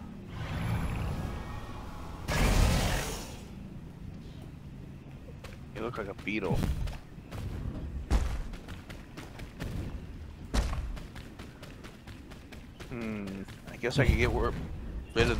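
Footsteps crunch on grass and earth.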